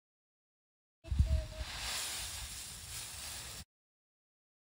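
Dry leaves rustle and scatter as they are tossed.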